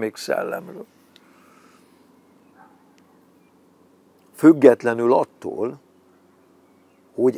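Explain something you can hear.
An elderly man speaks close by in short bursts, calmly and with pauses.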